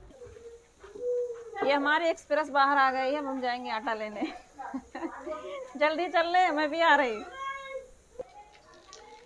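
A young woman talks and laughs playfully close by.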